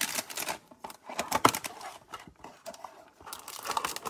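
A cardboard box flap is pulled open.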